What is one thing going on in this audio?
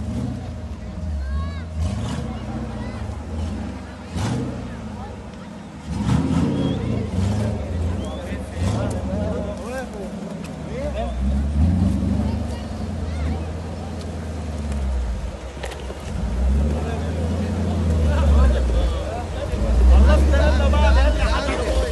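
Men in a crowd talk and call out outdoors.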